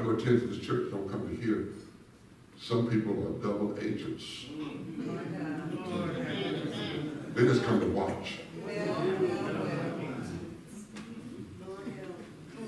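A man preaches through a microphone with animation in a large echoing hall.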